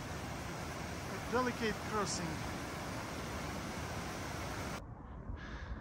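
A mountain stream rushes and splashes over rocks close by.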